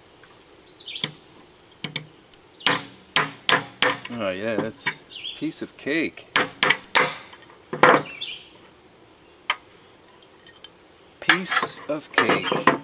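A spring-loaded metal tool snaps with sharp clicks.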